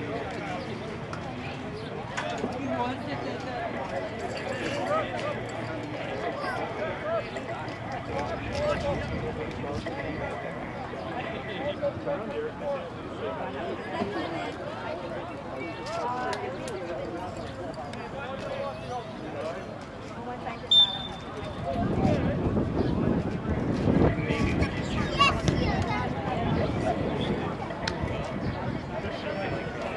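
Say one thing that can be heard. Players call out across an open field.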